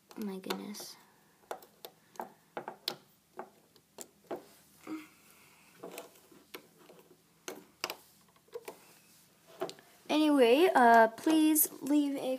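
Rubber bands snap and click against a plastic loom.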